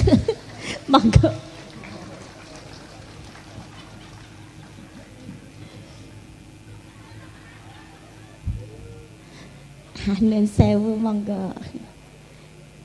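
A woman speaks with animation through a microphone, heard over loudspeakers.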